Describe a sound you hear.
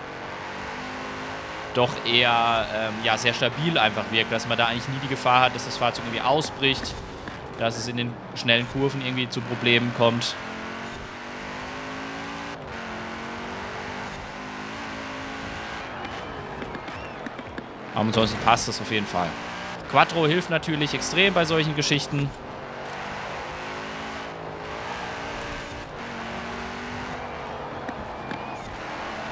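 A car engine roars and revs at high speed.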